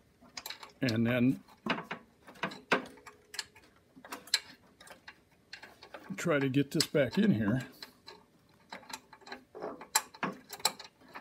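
Metal parts click and scrape together close by.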